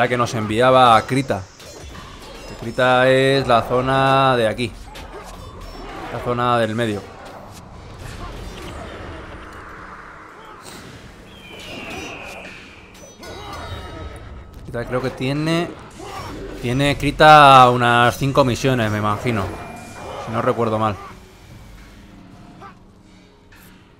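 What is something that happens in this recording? Weapons clash and spells burst in a fight.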